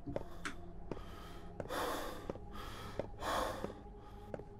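Footsteps thud slowly down creaking wooden stairs.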